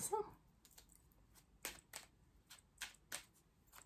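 Cards are shuffled with light flicking clicks.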